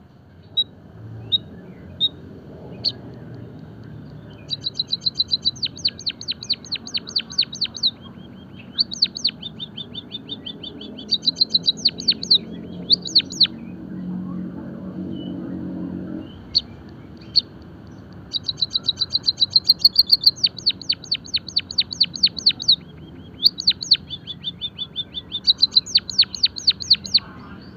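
A white-headed munia chirps and sings in rapid trills.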